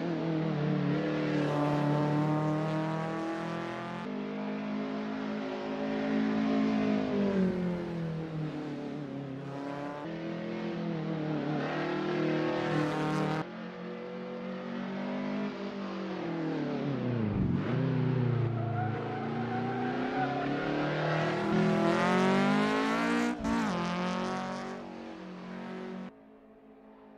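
A car engine revs hard, its pitch rising and falling through gear changes.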